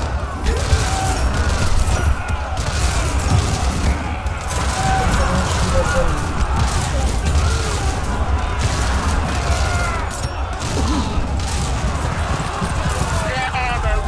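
Weapons clash and bang in a busy battle.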